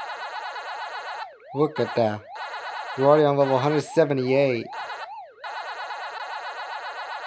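An arcade game's electronic siren warbles up and down in a steady loop.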